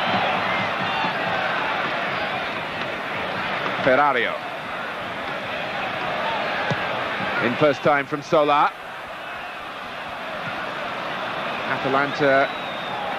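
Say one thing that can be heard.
A large stadium crowd roars and murmurs in the open air.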